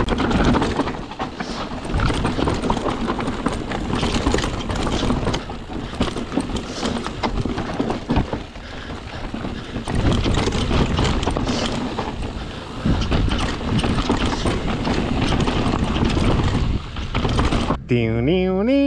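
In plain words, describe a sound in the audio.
Bicycle tyres crunch and rattle over a rough, stony trail.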